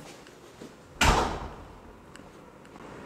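A heavy metal door slams shut with a booming echo.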